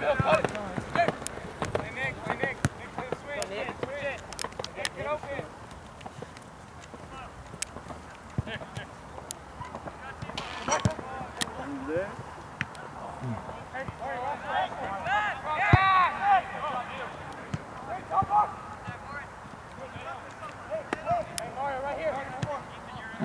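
Young players shout and call to each other across an open field outdoors.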